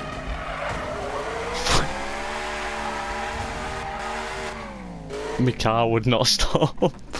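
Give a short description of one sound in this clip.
A racing car engine revs up sharply and rises in pitch.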